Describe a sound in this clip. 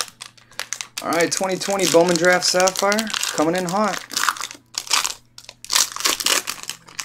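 A foil card pack crackles as it is torn open.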